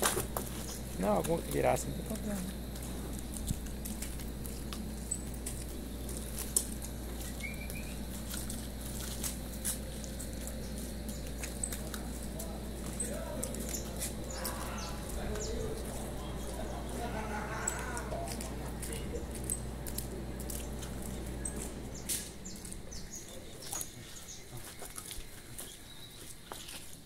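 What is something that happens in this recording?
A cow's hooves thud softly on damp dirt.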